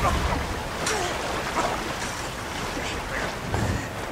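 A young woman gasps.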